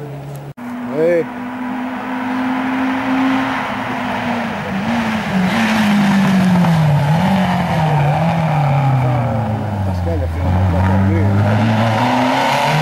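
A rally car engine revs up and down sharply.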